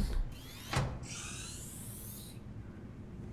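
A hatch door hisses as it slides open.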